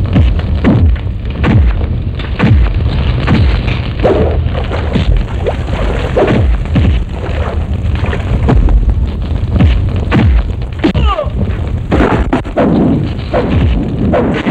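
Men shout and grunt as they fight.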